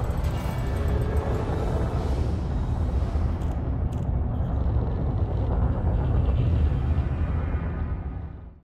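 A spaceship engine rumbles with a deep, steady drone.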